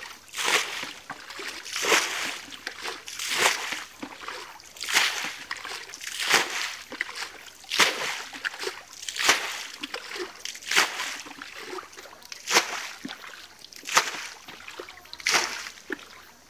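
Water splashes rhythmically as a bucket scoops and throws it out.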